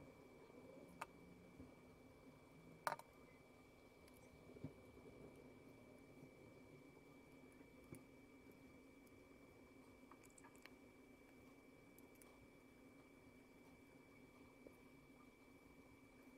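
A sewing needle and yarn pull through a crocheted hat with soft rustles.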